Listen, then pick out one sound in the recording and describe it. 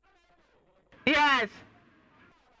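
A woman laughs loudly.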